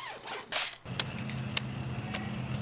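A metal pole clicks as it is extended.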